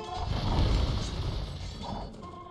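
A cannon blast booms and rumbles.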